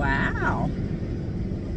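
A woman speaks briefly up close.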